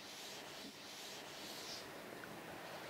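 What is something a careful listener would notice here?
A chalkboard eraser rubs across a board.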